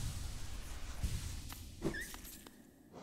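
A sharp slashing impact bursts with a ringing shimmer.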